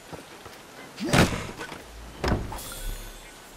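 A wooden chest creaks open with a heavy thud.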